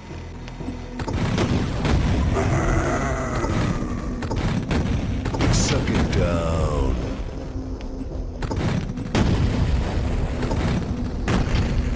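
A rocket launcher fires rocket after rocket.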